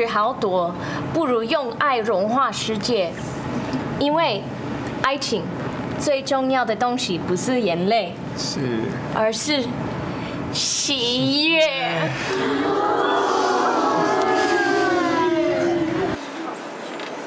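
A woman sings in a high, wavering voice.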